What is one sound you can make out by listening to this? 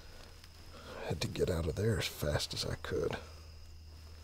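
An elderly man speaks quietly and slowly, close by.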